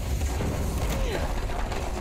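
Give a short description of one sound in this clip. A fiery blast bursts and crackles.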